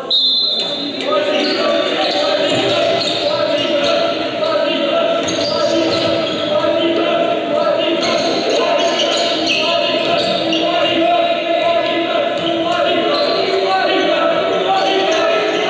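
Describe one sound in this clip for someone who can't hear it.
A crowd cheers and chatters in an echoing gym.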